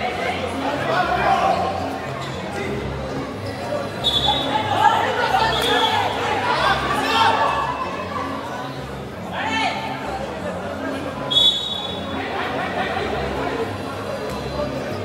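A crowd of spectators chatters and shouts.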